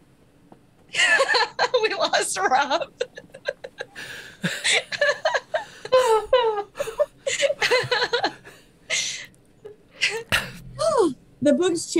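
Several women laugh loudly over an online call.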